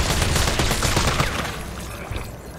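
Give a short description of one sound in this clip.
A gun fires in bursts.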